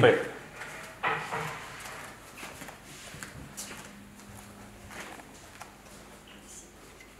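Footsteps walk across a hard floor indoors.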